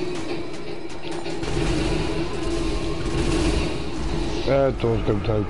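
A heavy tank engine rumbles.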